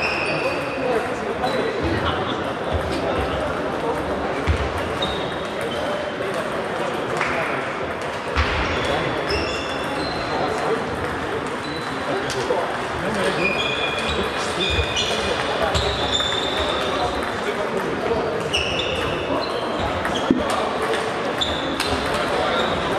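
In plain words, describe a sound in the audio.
A table tennis ball clicks back and forth off paddles and a table in an echoing hall.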